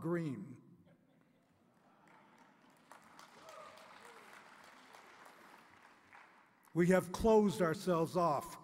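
An elderly man speaks calmly into a microphone, heard through loudspeakers in a large hall.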